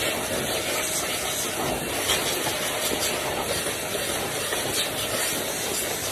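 A pet dryer blows a loud, steady rush of air through a hose.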